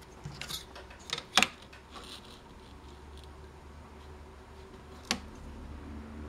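A metal ruler clicks down on a wooden board.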